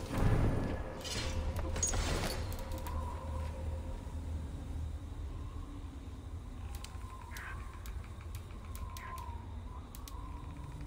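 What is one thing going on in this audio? Soft interface clicks and ticks sound as a menu is browsed.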